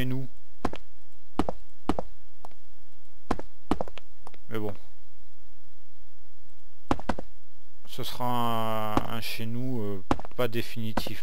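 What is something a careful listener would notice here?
Footsteps tap on stone at a walking pace.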